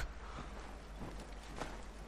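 Footsteps crunch through snow.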